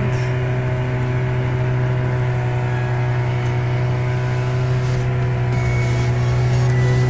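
A boat's engine hums steadily.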